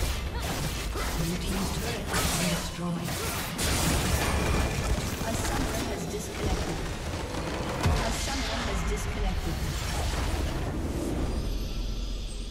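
Game spells crackle and blast in a busy fight.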